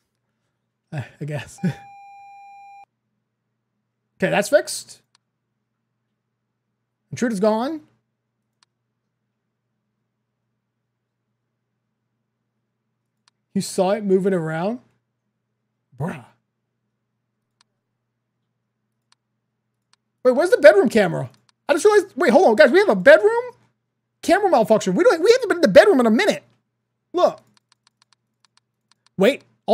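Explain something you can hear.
A young man talks with animation into a close microphone, in bursts.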